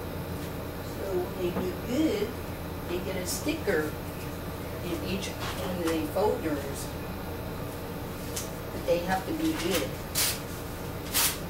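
A woman reads aloud.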